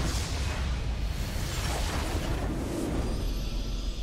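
Magic blasts crackle and boom in a video game battle.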